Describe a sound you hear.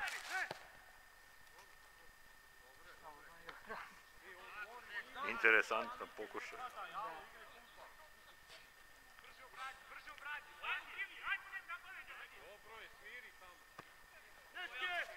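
Young men shout and call out to each other in the distance, outdoors in the open.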